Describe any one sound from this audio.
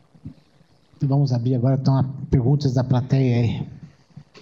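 A man speaks into a microphone in a large hall, heard through an online stream.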